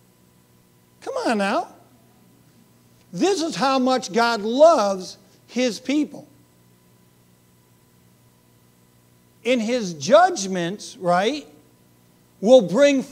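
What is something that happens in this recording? A middle-aged man speaks with animation in bursts through a microphone.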